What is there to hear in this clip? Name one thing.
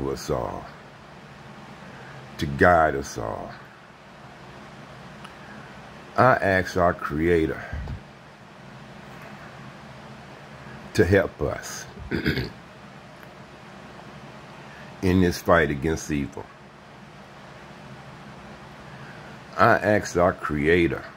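An elderly man speaks slowly and softly close to the microphone, in short bursts with long pauses.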